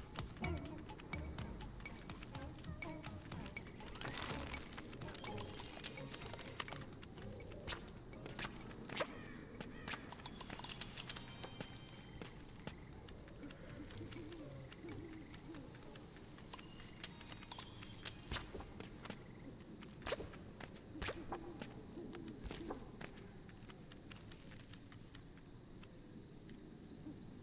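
Soft footsteps patter as a small character runs along.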